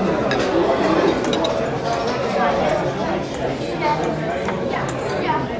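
Many people chatter in the background of a busy room.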